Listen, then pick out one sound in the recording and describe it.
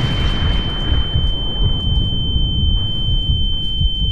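A volcano erupts with a deep, rumbling roar.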